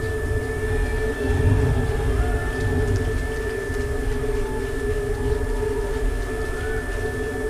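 A rocket engine roars in a low, distant rumble.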